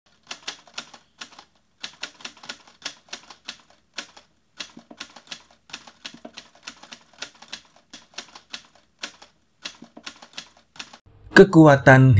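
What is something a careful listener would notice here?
Book pages rustle and flip as a hand turns them.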